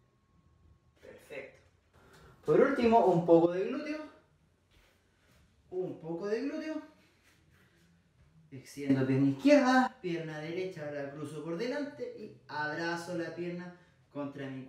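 A young man speaks calmly close by, in short bursts.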